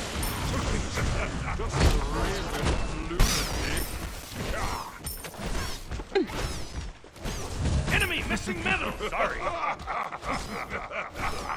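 Blows land with sharp impacts.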